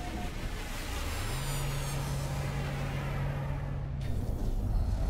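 A spaceship engine hums steadily, then cuts off.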